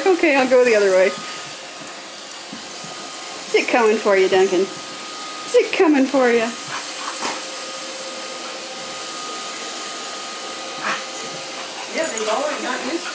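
A small dog barks in high, yappy bursts close by.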